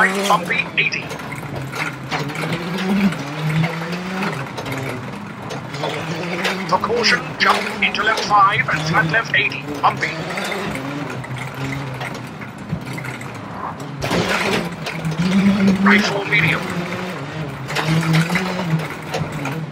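Gravel crunches and rattles under tyres.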